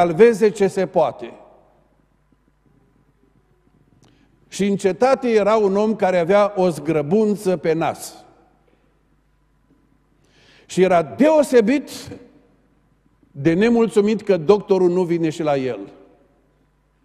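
A middle-aged man speaks with animation through a microphone in a reverberant hall, pausing between phrases.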